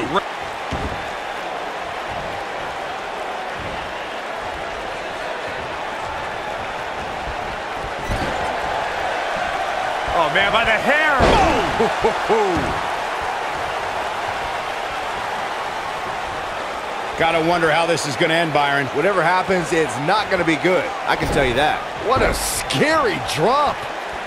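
An arena crowd murmurs and cheers.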